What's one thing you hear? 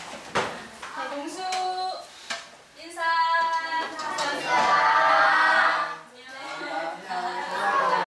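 Children chatter and call out in a room.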